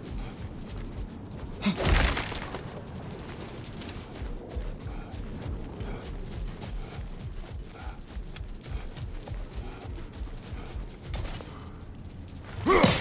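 Heavy footsteps crunch steadily on soft snow.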